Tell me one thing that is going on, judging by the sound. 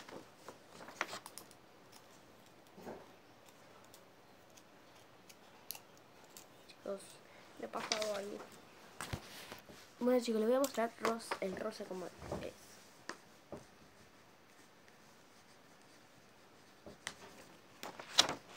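Paper rustles in a girl's hands.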